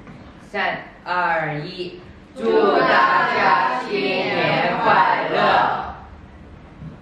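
A young woman speaks clearly through a microphone in a large hall.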